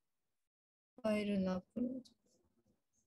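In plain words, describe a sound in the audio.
A woman talks through an online call.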